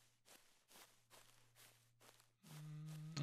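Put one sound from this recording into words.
Footsteps swish softly through tall grass.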